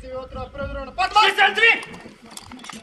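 A man shouts a loud command outdoors.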